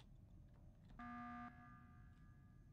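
A game alarm chimes briefly.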